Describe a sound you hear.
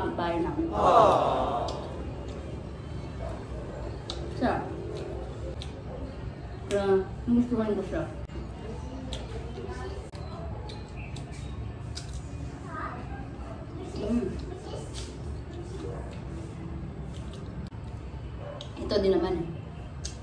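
A young woman crunches bites of crisp fruit.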